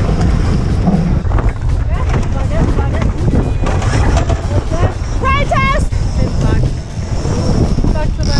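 Water splashes and rushes against a boat's hull.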